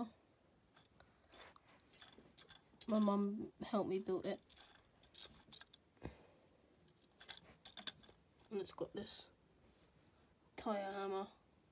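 Plastic toy parts click and rattle as a hand moves them.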